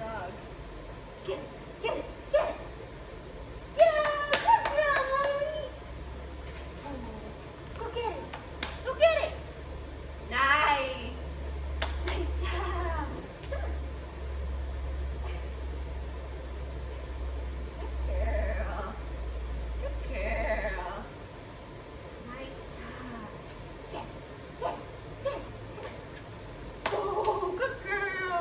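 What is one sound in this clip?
A dog's claws tap on a hard floor.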